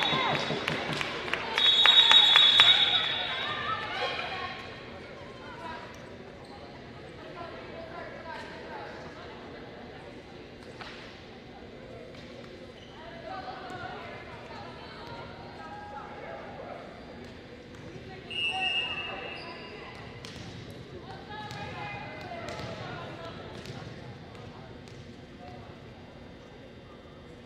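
Young women call out and shout to each other on the court.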